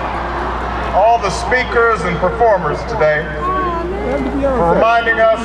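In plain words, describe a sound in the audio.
A man speaks through loudspeakers outdoors, with a strong echo.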